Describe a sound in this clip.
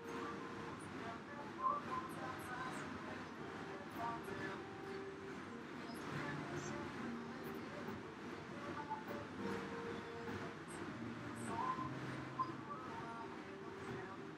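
An exercise bike's fan whirs and whooshes steadily with each push of the pedals.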